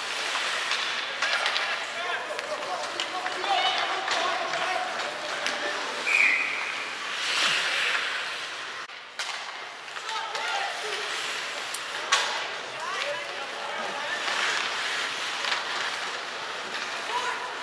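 Young players shout across the ice.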